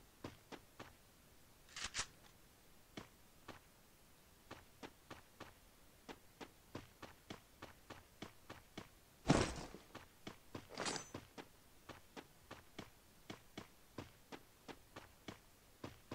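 Footsteps patter quickly on a hard surface.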